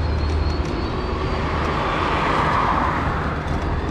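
A van drives past on a wet road.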